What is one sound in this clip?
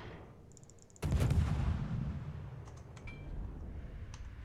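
Heavy naval guns fire with a deep boom.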